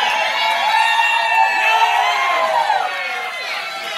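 A few people clap their hands.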